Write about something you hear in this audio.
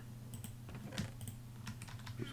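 Short soft clicks sound in quick succession.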